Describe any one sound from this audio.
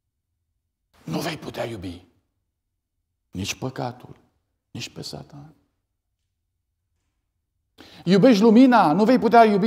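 A middle-aged man speaks with animation through a microphone in a large, echoing room.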